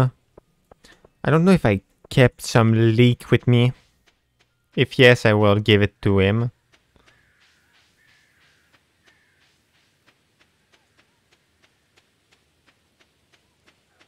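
Light footsteps tap steadily along a dirt path.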